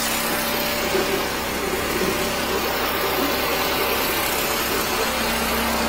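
High-pressure water hisses steadily down a drain.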